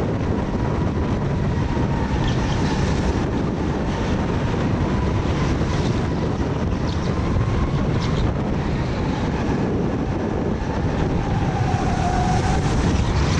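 Go-kart engines buzz loudly and steadily up close.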